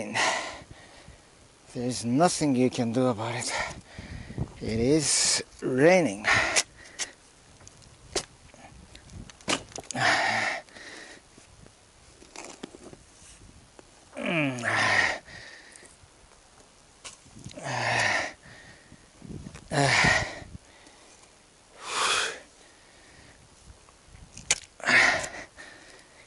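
A shovel scrapes and digs into stony soil, again and again.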